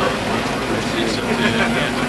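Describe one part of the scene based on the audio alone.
Several men talk quietly at a distance.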